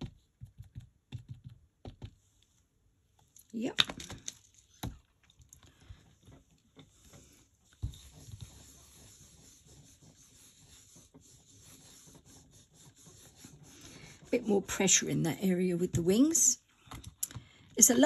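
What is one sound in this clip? Paper rustles and slides under hands.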